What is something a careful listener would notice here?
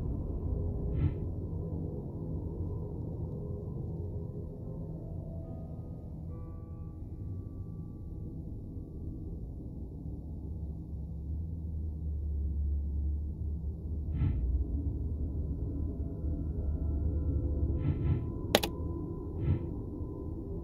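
A short game chime rings as a puzzle button is pressed.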